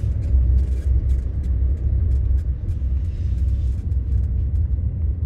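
A car engine rumbles low and steady inside the cabin.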